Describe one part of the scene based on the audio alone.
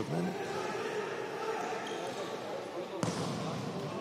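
A player kicks a ball with a dull thump.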